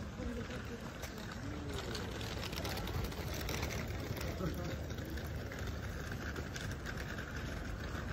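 People talk and murmur in a street outdoors.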